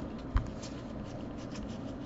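Trading cards slide and rustle against each other in someone's hands.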